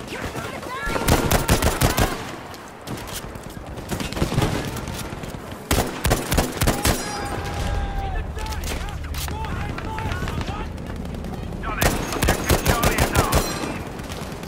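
Rapid gunshots crack and echo in bursts.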